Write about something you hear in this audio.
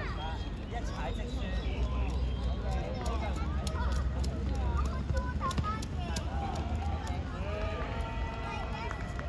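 Young players shout and call out to each other across an open outdoor pitch.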